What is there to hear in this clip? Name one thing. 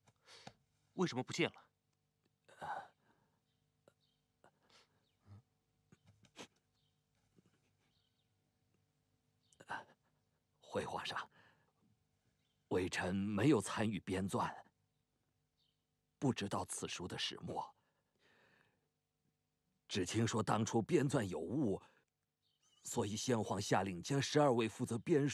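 A young man speaks briefly in a low voice.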